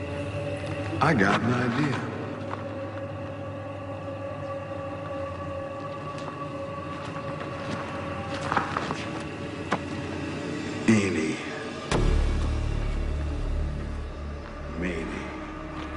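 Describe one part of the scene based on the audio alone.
A man speaks slowly and menacingly, close by.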